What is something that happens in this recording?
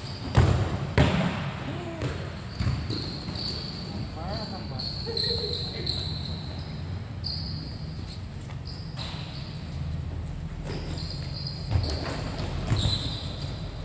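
A ball is kicked with sharp thumps that echo in a large open hall.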